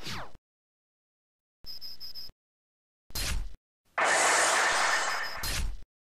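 Electronic game sound effects play in short bursts.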